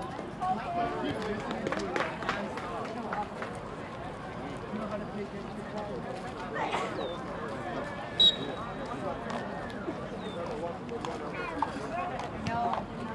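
Young men shout and call out to one another across an open field.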